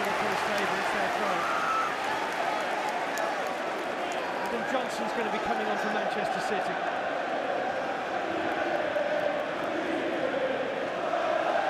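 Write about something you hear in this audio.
A large stadium crowd sings and chants loudly throughout.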